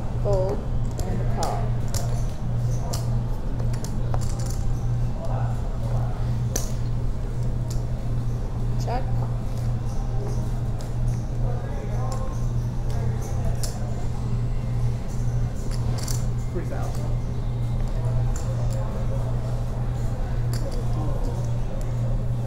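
Poker chips click and clatter.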